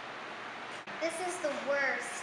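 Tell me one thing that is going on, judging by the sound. A young girl speaks calmly nearby.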